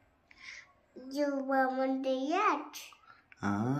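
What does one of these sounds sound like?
A toddler girl babbles and makes sing-song sounds close by.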